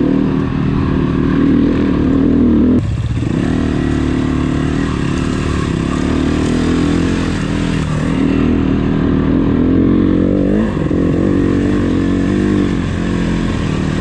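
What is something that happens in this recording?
A motorcycle engine revs and drones close by, rising and falling in pitch.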